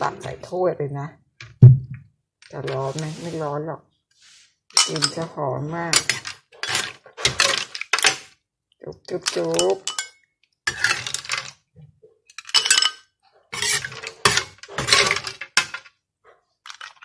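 A metal ladle scrapes against a pan.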